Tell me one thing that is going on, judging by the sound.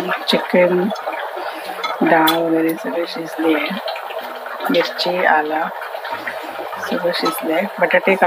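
Fingers squish soft boiled potato.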